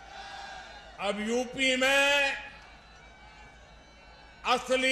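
A man speaks forcefully through a microphone and loudspeakers.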